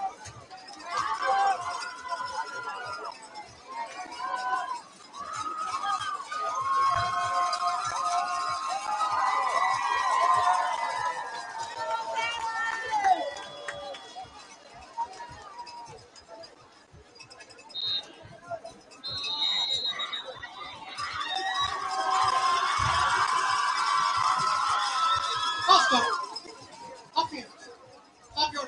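A crowd of players and spectators chatters and shouts outdoors.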